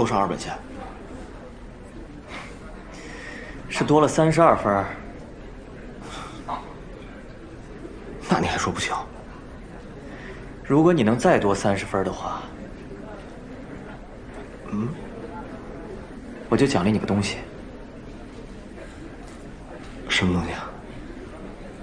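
A young man speaks softly up close.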